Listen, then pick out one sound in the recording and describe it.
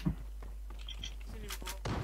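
Footsteps thud on stairs.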